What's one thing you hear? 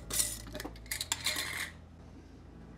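A lid scrapes and unscrews from a glass jar.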